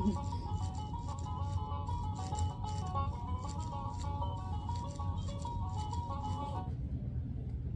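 A toy plays a tinkling tune.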